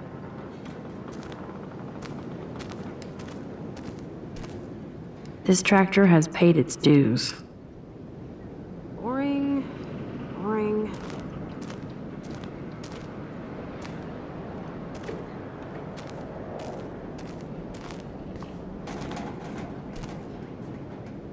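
Footsteps tread softly on a straw-covered floor.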